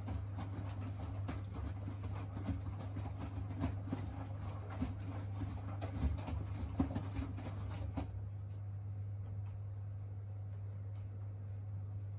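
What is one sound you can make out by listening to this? A washing machine hums steadily.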